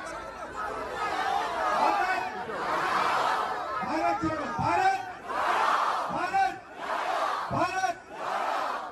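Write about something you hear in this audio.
A huge outdoor crowd cheers and chants loudly.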